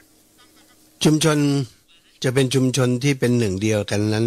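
A man chants slowly through a microphone.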